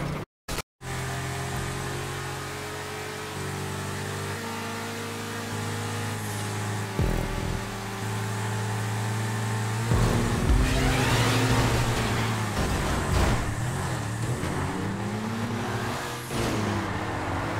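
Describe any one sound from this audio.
A sports car engine roars at full throttle.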